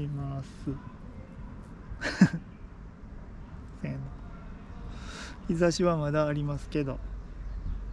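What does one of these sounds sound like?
A crow croaks and caws up close.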